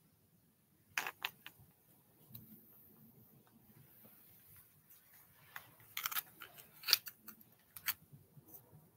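Glass clicks and taps in a hand nearby.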